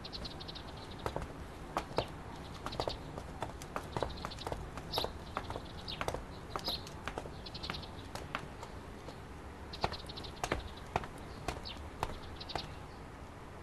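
Footsteps walk away at an even pace.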